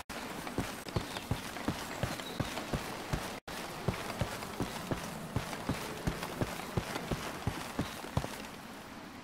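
Heavy footsteps crunch steadily over dry brush and twigs.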